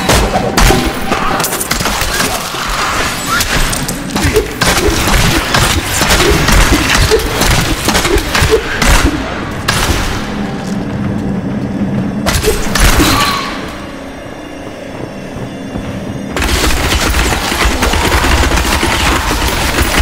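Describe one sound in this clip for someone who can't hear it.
Swords clash and magic blasts crackle in a fast fight.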